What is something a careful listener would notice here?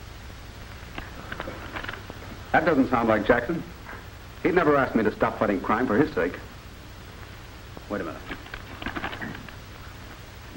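A man speaks through an old film soundtrack.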